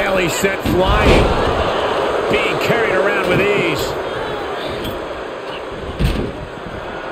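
Heavy thuds of bodies slamming onto a wrestling mat.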